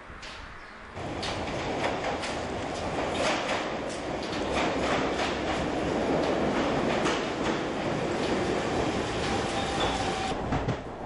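A train rumbles into a station and slows to a stop.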